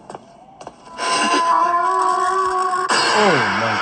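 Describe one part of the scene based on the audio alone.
A creature lets out a loud, harsh shriek.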